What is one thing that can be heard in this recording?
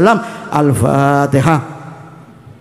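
A middle-aged man speaks with feeling through a microphone and loudspeakers, echoing in a large hall.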